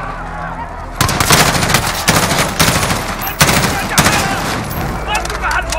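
A rifle fires in rapid bursts of loud gunshots.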